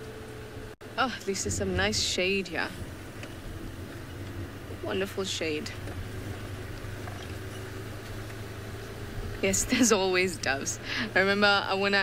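A young woman talks calmly nearby, in short bursts.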